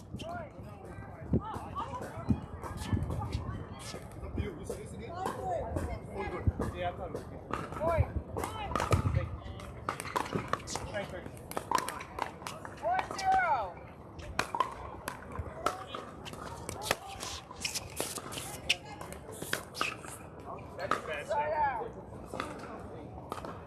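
Paddles strike a plastic ball with sharp pops, back and forth.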